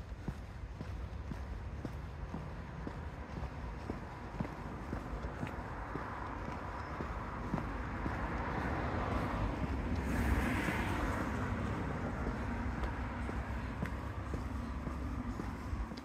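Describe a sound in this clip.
Footsteps tread steadily on a paved path outdoors.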